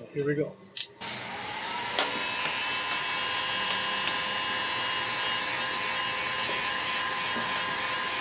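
A heat gun blows with a steady, loud whoosh and whine.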